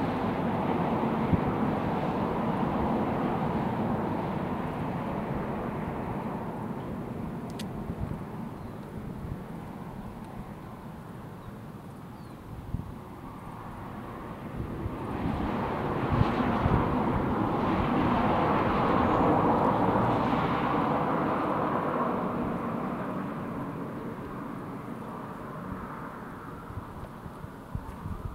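Wind gusts blow outdoors, rising and falling.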